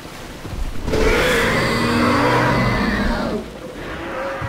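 A large creature lets out a loud, rasping roar.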